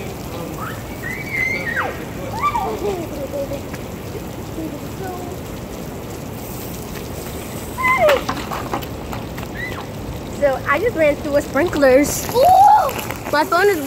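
A young girl squeals excitedly close by.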